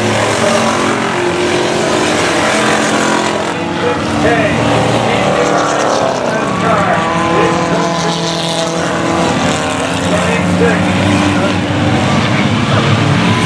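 Race car engines roar and rev loudly around a track.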